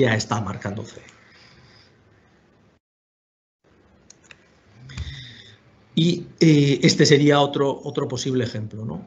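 A middle-aged man speaks calmly through an online call, with pauses.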